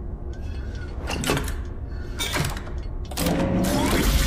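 A metal lever clanks.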